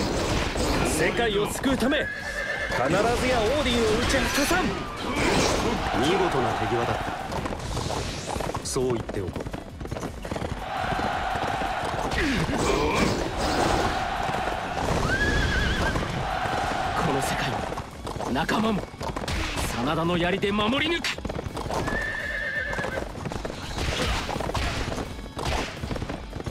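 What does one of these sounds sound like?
A horse's hooves gallop steadily.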